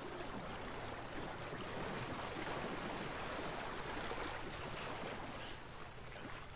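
Water splashes as a man wades through a shallow swamp.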